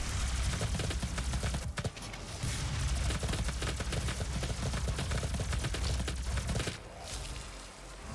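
A monster growls and roars up close.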